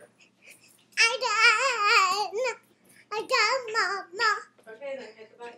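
A young girl sings close by in a high voice.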